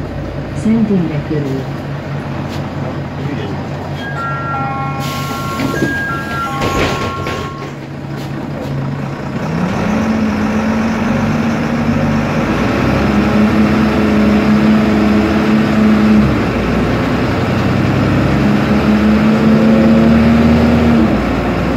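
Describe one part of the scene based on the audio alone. A bus engine hums and whines steadily, rising and falling in pitch as it drives.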